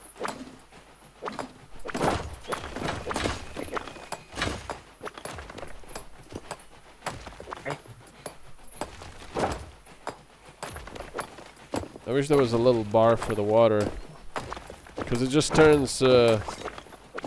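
A small train rattles along a track.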